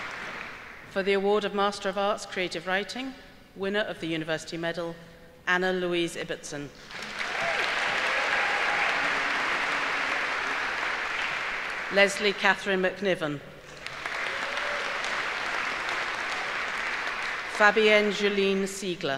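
A middle-aged woman reads out names through a microphone in a large echoing hall.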